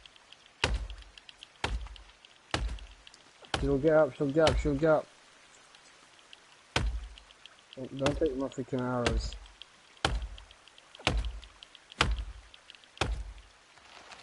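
An axe chops into a tree trunk with sharp, repeated thuds.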